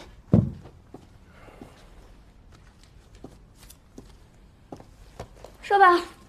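A woman's heels click on the floor as she walks.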